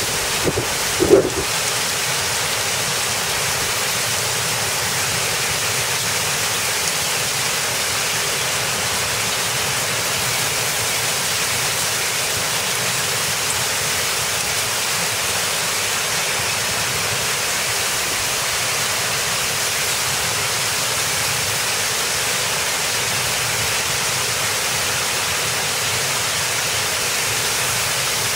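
Heavy rain mixed with hail pours down.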